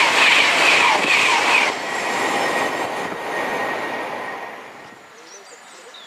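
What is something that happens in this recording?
A train pulls away along the tracks and fades into the distance.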